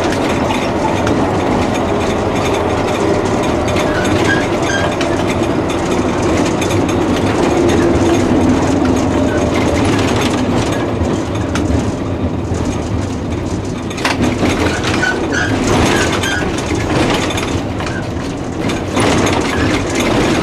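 A tram rumbles and rattles steadily along its rails.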